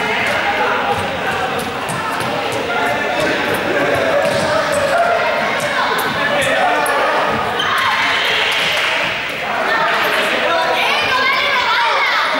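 Balls bounce on a hard floor.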